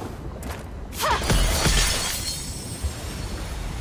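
A magical burst whooshes loudly and fades.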